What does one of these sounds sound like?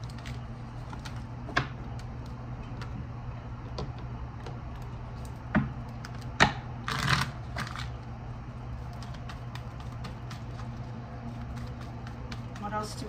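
Cards tap and shuffle against each other close by.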